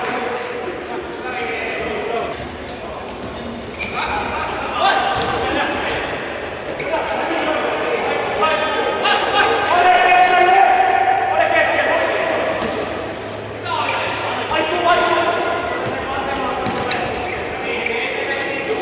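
A crowd of spectators chants and cheers in a large echoing indoor arena.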